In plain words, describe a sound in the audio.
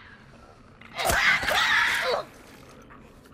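A short, violent scuffle thuds and scrapes up close.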